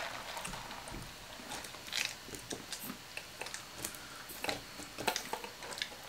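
A woman sips a drink through a straw.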